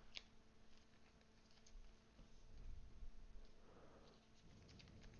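Plastic card sleeves rustle and crinkle as they are handled.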